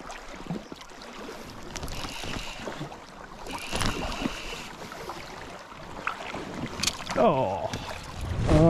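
A river flows and ripples steadily.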